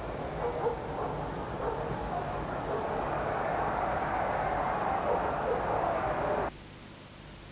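A large crowd murmurs and roars in a stadium.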